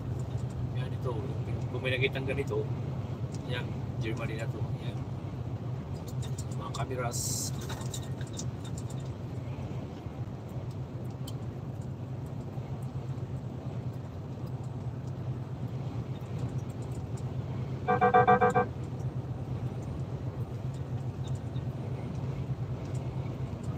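A vehicle engine drones steadily with road noise while driving on a highway.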